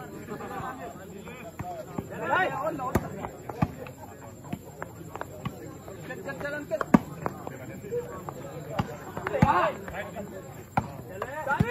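Young men shout and call out outdoors during play.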